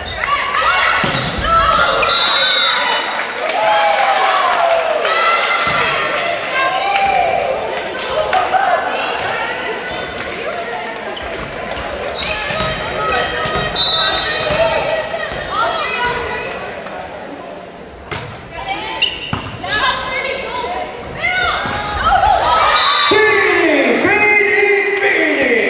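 Young women shout and cheer in a large echoing gym.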